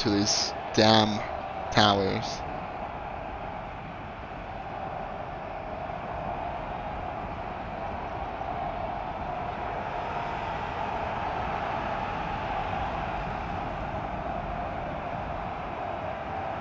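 A battle din of many soldiers roars steadily in the distance.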